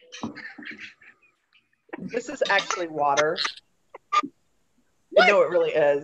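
Women talk and laugh with animation over an online call.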